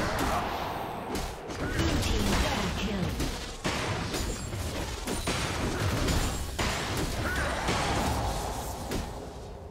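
Fast game battle effects crackle, whoosh and clash without a break.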